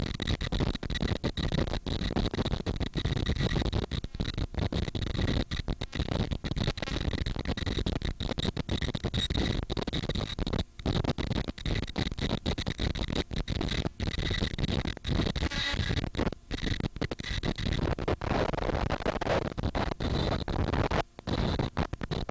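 Jet engines roar steadily nearby.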